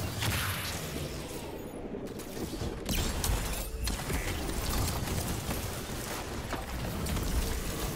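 Electric blasts crackle and zap.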